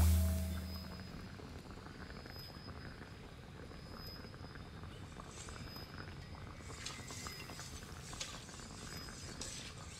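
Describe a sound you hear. A potion bubbles and simmers in a cauldron.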